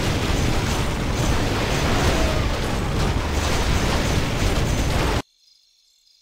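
Swords clash and spells crackle in a crowded game battle.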